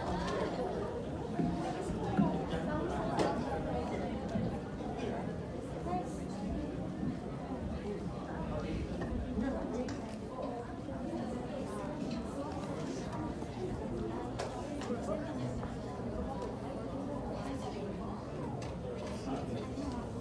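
Many people chatter at a distance in a large echoing hall.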